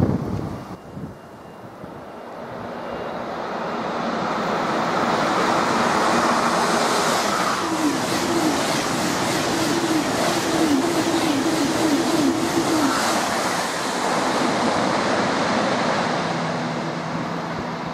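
A high-speed train approaches and roars past at speed, then fades away.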